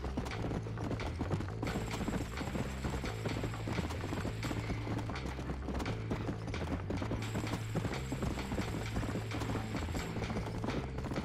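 A horse gallops, hooves thudding on a dirt track.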